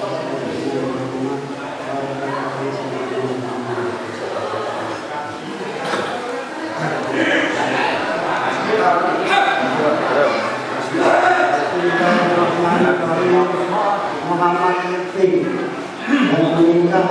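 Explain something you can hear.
An elderly man speaks steadily into a microphone.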